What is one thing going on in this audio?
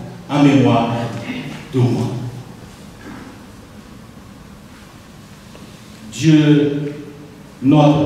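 A middle-aged man speaks calmly into a microphone in a large echoing hall, with pauses between phrases.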